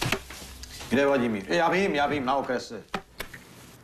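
A man speaks calmly indoors.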